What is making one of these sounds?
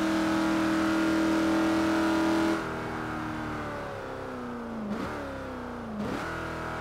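A car engine roars steadily, then drops in pitch as it eases off, with short jumps at gear changes.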